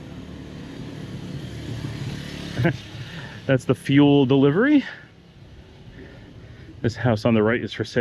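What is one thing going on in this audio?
A motorbike engine hums as it approaches along the street.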